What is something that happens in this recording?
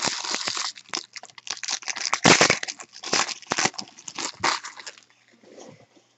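Foil wrappers crinkle and tear as packs are ripped open.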